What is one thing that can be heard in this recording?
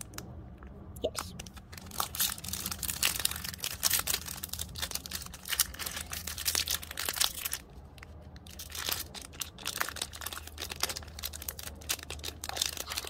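A foil wrapper crinkles and tears as hands pull it open.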